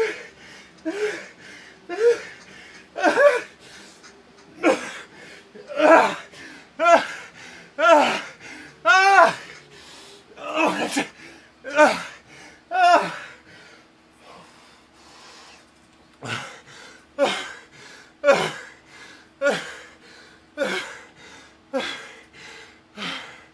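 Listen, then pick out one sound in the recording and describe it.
A man groans and pants loudly with effort close to a microphone.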